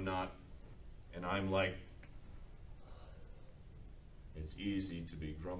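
A man speaks slowly and calmly in a room with a slight echo.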